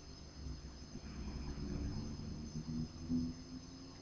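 Flux sizzles softly under a hot soldering iron.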